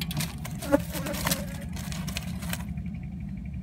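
Twigs rustle and crackle as a bird shifts in its nest.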